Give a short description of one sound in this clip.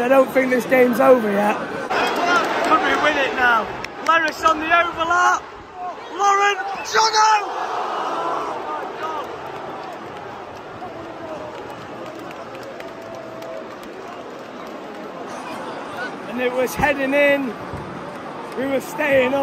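A large stadium crowd roars and murmurs outdoors.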